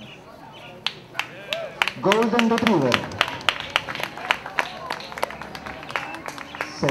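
Spectators clap their hands outdoors.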